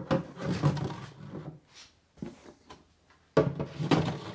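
A plastic box scrapes as it slides out of a wooden shelf.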